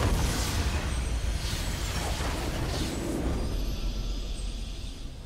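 A large crystal structure shatters with a deep explosion.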